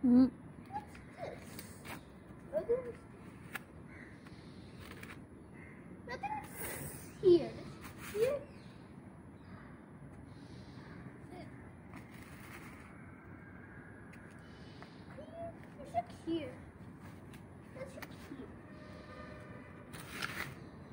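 A small plastic shovel scrapes and digs into dry soil.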